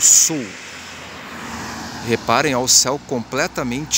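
A car drives along the street nearby.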